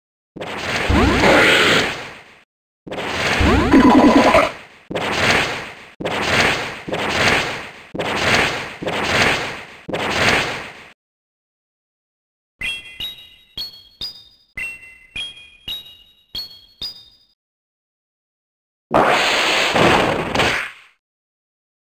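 Heavy crackling blasts from a game battle burst again and again.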